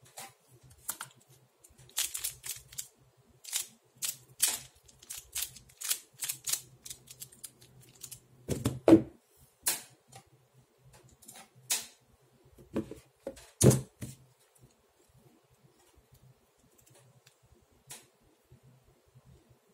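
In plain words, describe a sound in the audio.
Plastic puzzle pieces click and clack as a puzzle is twisted quickly.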